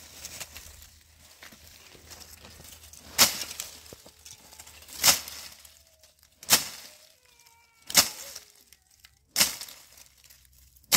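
Dry twigs and leaves crackle and rustle.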